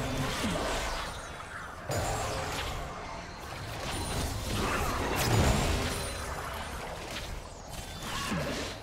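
Spell effects whoosh and crackle in a fast fight.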